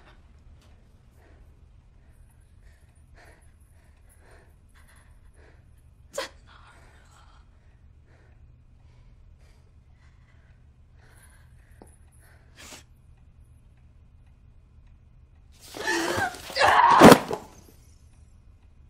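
A young woman speaks in a tearful, pleading voice.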